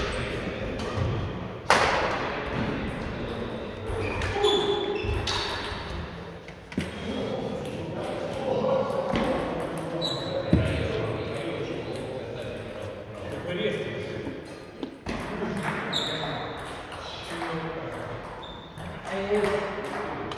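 Several people talk nearby in a large echoing hall.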